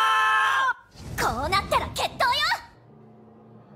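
A girl shouts with animation.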